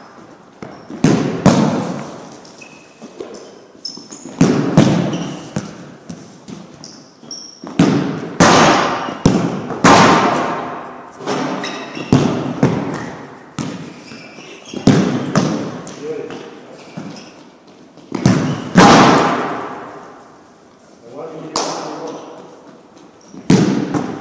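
A ball thuds against a wall and floor, echoing through a large hall.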